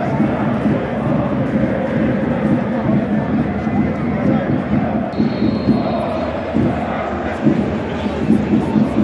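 A large stadium crowd chants and cheers loudly all around, outdoors.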